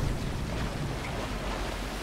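Water splashes and churns against a stone wall.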